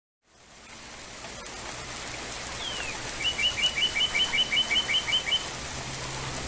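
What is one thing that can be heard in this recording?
Rain patters softly on leaves.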